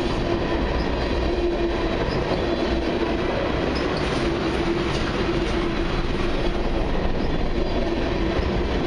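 A long freight train rolls past close by, its wheels rumbling and clattering on the rails.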